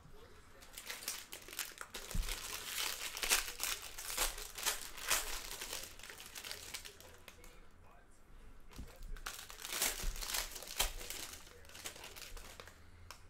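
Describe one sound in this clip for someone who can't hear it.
A plastic card wrapper crinkles and tears as hands open it.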